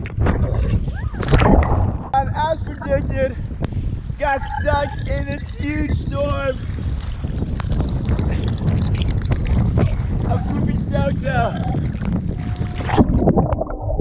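Water splashes and sloshes around a swimmer.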